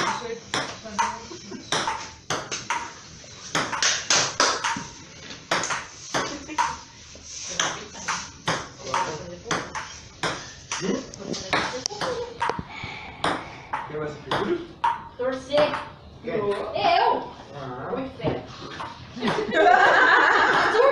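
A ping-pong ball clicks sharply back and forth on a table and paddles.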